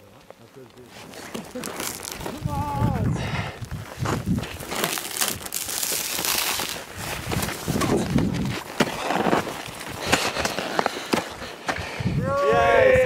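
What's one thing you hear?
Boots crunch and scrape through deep snow close by.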